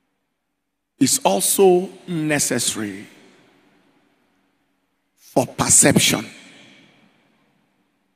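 A man preaches with animation into a microphone, his voice echoing through a large hall.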